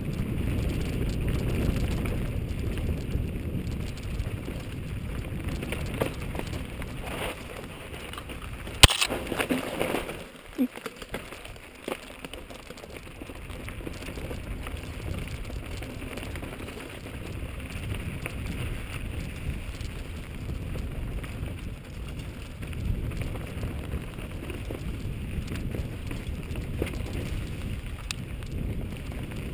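Wind rumbles across a microphone outdoors.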